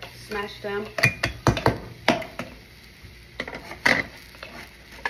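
Utensils clatter against a dish.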